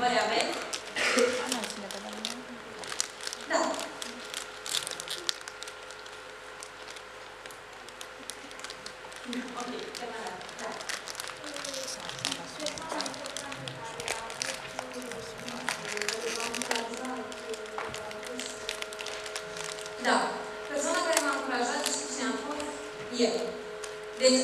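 A young woman speaks calmly into a microphone, amplified through loudspeakers in a large hall.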